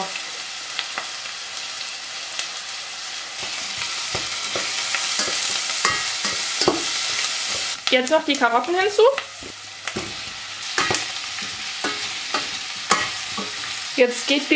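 A spoon scrapes and knocks against a metal pot.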